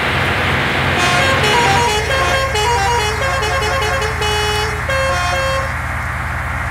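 A horn plays a melodic tune in short bursts.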